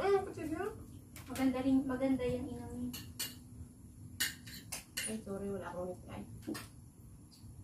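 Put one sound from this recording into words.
Young women talk and laugh nearby.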